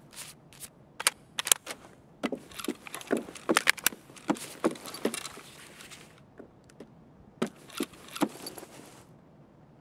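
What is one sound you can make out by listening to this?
Footsteps thud and creak across a wooden floor indoors.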